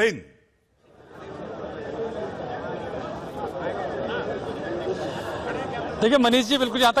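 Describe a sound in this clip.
A crowd murmurs and chatters.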